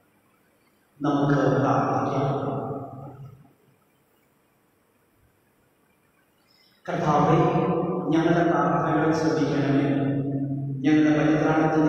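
A man chants into a microphone, heard through loudspeakers in an echoing hall.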